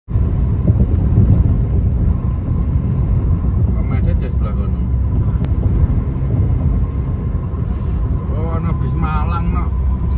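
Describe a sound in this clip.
A car's engine hums and its tyres rumble steadily on a motorway.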